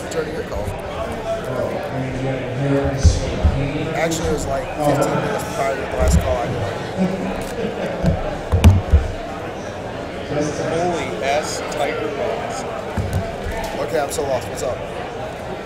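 Plastic card cases click and clatter as they are handled.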